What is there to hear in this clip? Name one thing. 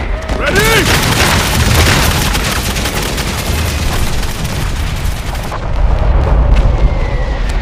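Heavy guns rumble and boom in the distance.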